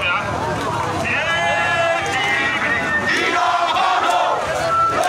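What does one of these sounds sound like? A large crowd of men and women shouts and chants together outdoors.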